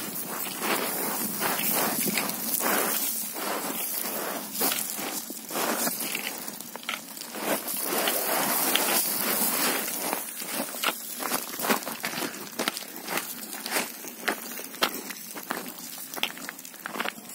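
Boots crunch and scrape on loose scree.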